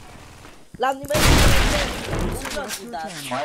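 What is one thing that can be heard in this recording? A sniper rifle fires a single loud, booming shot.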